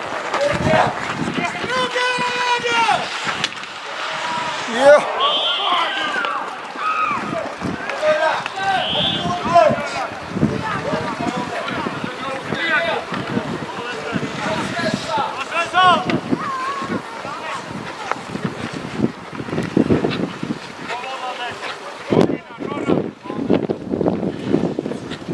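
Skate blades scrape across ice.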